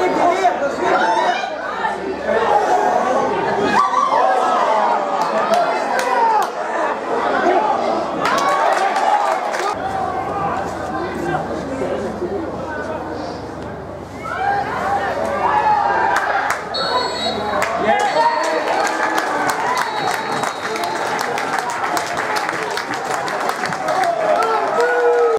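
A crowd of football spectators shouts and calls out outdoors.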